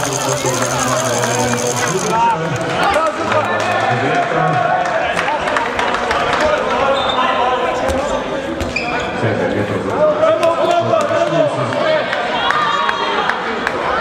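Spectators chatter in the background.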